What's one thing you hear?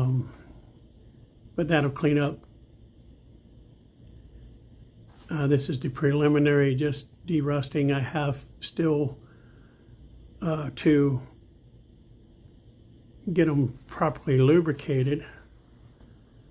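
A pocketknife blade clicks as it opens and snaps shut.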